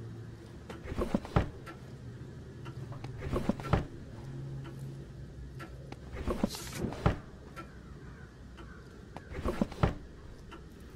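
A wooden drawer slides open and shut with dull thuds.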